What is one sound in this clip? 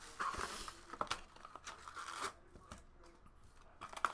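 A cardboard box flap is pulled open.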